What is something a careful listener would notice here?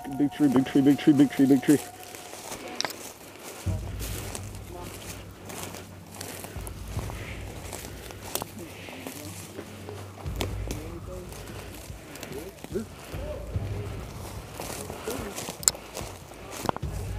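Footsteps crunch over dry leaves and twigs.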